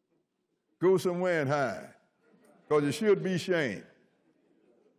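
An elderly man speaks slowly and deliberately into a microphone, reading out.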